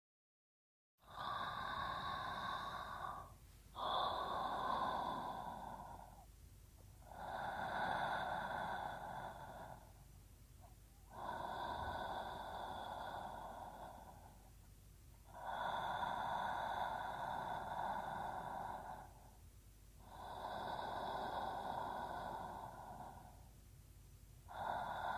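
A young woman breathes slowly and softly in her sleep, close by.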